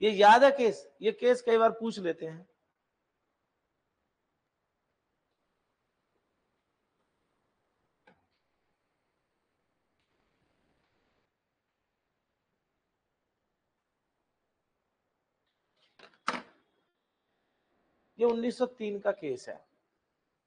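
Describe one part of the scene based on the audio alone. A middle-aged man speaks calmly into a microphone, lecturing in short phrases with long pauses.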